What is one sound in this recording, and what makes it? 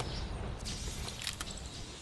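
A bright blast bursts with a sharp crack.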